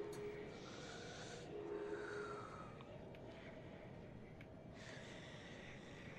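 A glass bottle clinks as it is picked up.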